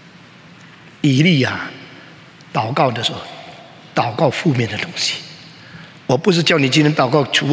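An elderly man preaches with animation through a microphone, his voice echoing in a large hall.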